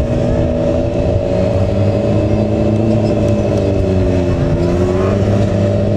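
A motorcycle engine hums steadily nearby, its pitch rising and falling slightly.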